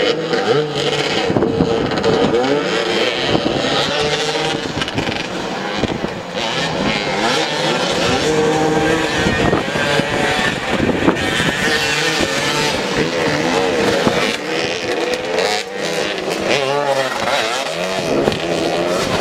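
Several motorcycle engines rev and roar loudly, rising and falling in pitch.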